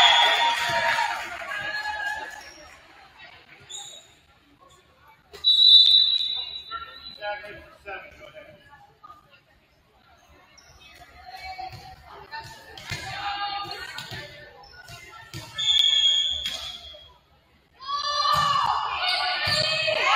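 Young women shout and call out in a large echoing gym.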